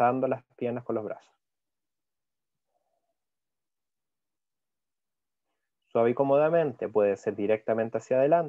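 A man speaks calmly through an online call, pausing between instructions.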